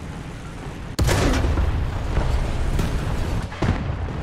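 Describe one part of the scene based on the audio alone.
A tank cannon fires with a loud boom that rolls away.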